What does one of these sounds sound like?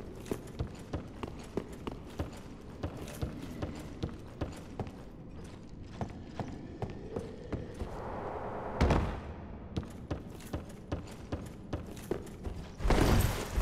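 Heavy armored footsteps thud steadily.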